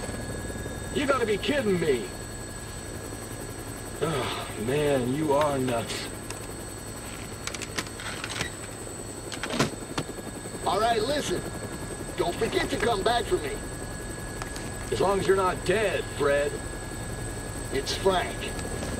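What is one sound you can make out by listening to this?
A man speaks with animation over a headset radio.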